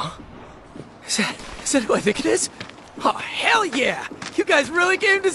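A young man exclaims with animated excitement.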